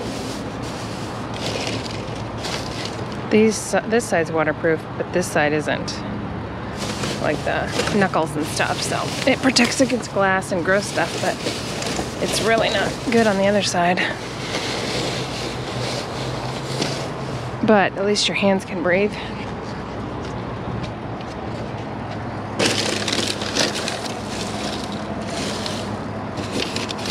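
Plastic bags rustle and crinkle as they are handled close by.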